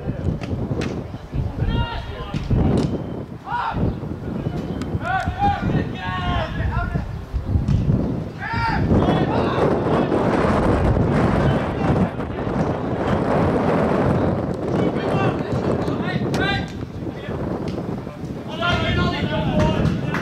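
Wind blows roughly across the field, outdoors.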